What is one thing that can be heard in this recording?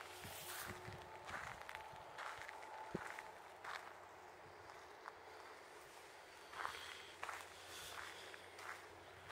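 Wind blows through bare trees outdoors.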